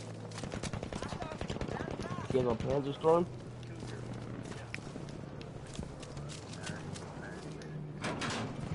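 A machine gun fires rapid bursts.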